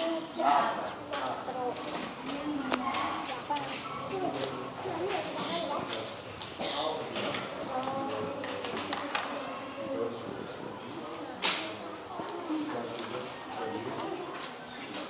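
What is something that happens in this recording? Young children chatter nearby.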